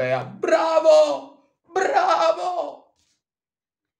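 A man shouts loudly and excitedly close to a microphone.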